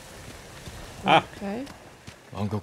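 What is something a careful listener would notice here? A woman speaks briefly into a microphone.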